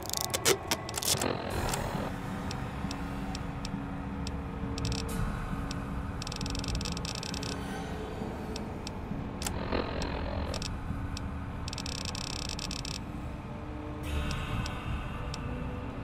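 Short menu clicks tick again and again as a list is scrolled.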